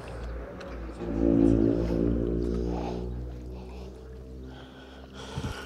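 Water splashes and ripples as a rope is pulled from it.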